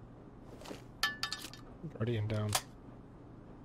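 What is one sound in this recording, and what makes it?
A gun's metal parts click and rattle as it is handled.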